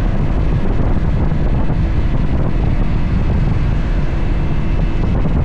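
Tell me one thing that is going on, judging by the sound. Wind rushes loudly and steadily past a moving motorcycle.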